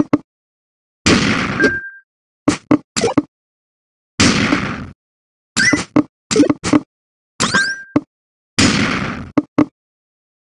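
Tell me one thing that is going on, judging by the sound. A cleared line bursts with a crackling swoosh.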